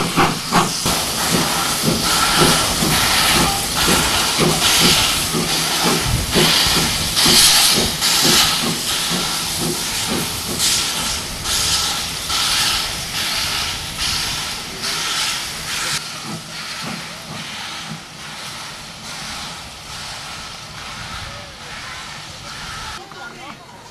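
A steam locomotive's wagons rumble and clank along the rails.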